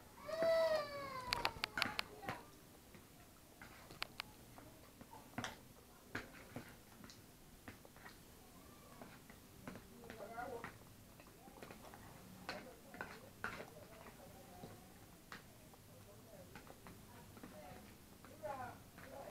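A man and a woman chew and slurp food close by.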